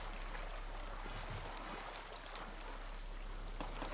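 A dog paddles through water.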